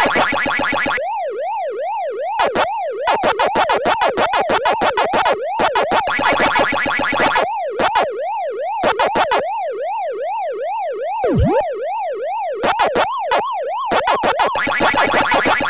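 Quick electronic chirps repeat as dots are eaten.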